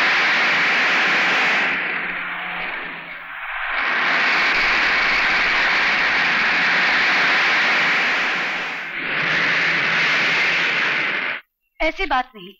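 A bus engine roars loudly as the bus drives past.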